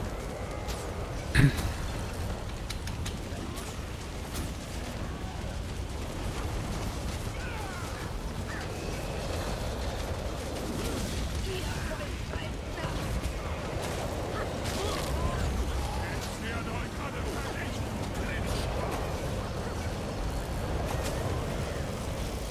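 Fire roars and crackles from blasts of flame.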